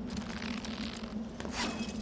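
A rope creaks under a climber's grip.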